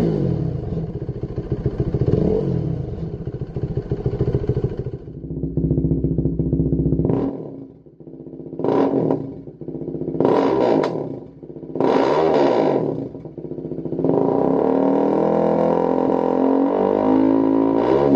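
A motorcycle engine idles with a deep, uneven rumble.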